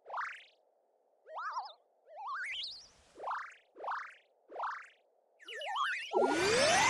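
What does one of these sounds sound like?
A small creature squeaks in quick rising chirps.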